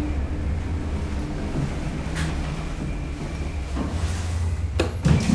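An elevator hums steadily as it moves.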